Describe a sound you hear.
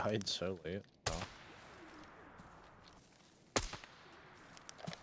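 A rifle fires a sharp shot that echoes away.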